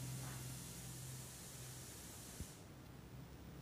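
Vegetables sizzle softly in hot oil in a pan.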